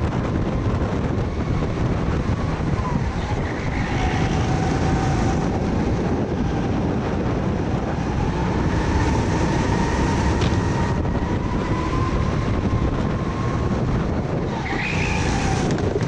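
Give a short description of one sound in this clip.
A kart engine buzzes loudly and steadily close by.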